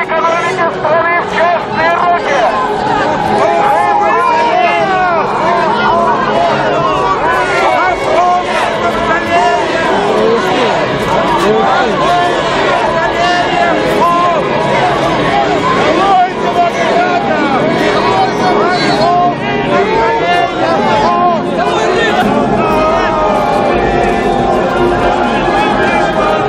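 A large crowd of men and women clamours outdoors.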